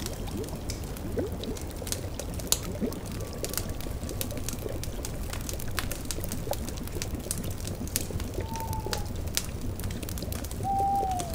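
A cauldron's brew bubbles and gurgles.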